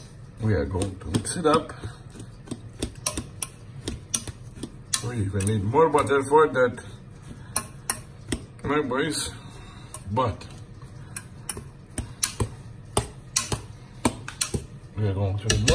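A metal masher knocks and scrapes against a pot while mashing soft potatoes.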